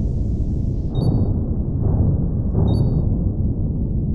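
Laser weapons fire in short bursts.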